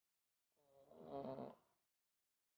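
A man gulps a drink.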